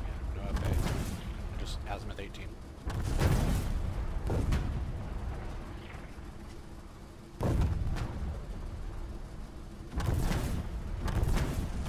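Heavy explosions boom again and again, each one rumbling away.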